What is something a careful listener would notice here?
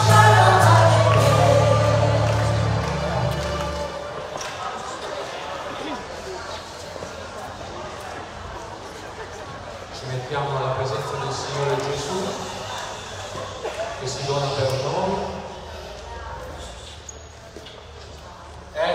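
A man speaks calmly into a microphone through a loudspeaker in an echoing hall.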